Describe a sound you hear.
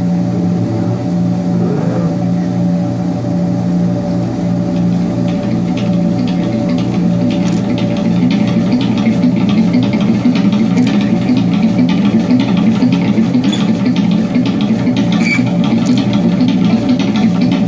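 An electronic keyboard plays a pulsing synth line.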